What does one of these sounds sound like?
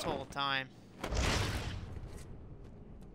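A cloth cape whooshes through the air during a drop.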